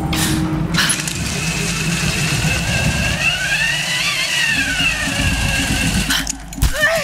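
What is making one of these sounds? A pulley whirs along a taut rope with a steady whine.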